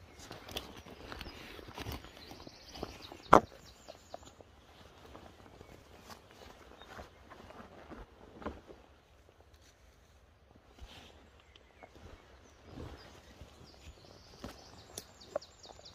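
Clothing rustles and knocks against the microphone.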